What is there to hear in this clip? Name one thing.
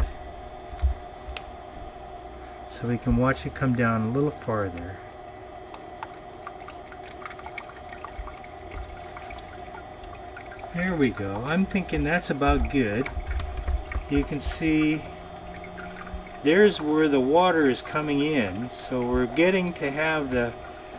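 Water bubbles softly inside a filter housing.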